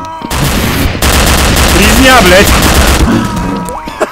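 A machine gun fires in rapid bursts nearby.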